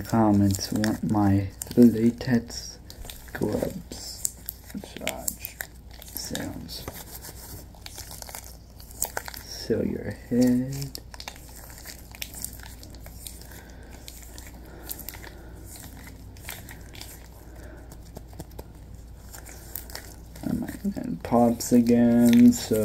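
Rubber gloves rustle and snap on hands.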